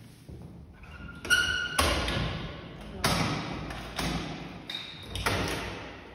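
A metal door bolt clunks as it slides.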